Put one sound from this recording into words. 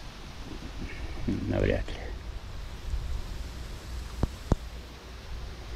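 Wind blows in gusts, rumbling over the microphone outdoors.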